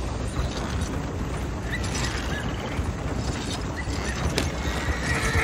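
A wagon rolls and rattles over a dirt road.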